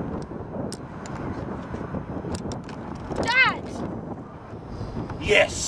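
Wind blows across a microphone outdoors.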